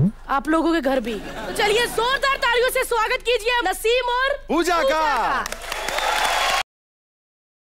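A woman sings loudly and brightly nearby.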